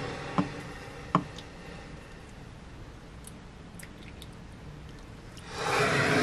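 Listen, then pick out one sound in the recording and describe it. Water pours into a glass mug.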